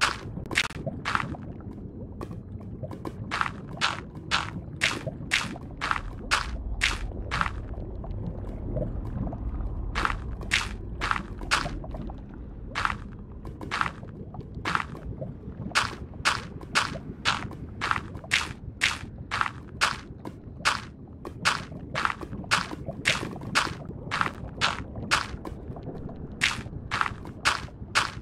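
Lava bubbles and pops with a low rumble.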